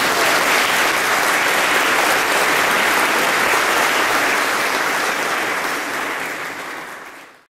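An audience applauds loudly in a reverberant hall, then the applause fades.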